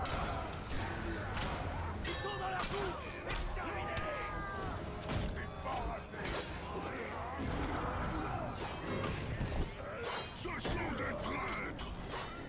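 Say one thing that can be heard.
Swords clash and slash rapidly in a fierce fight.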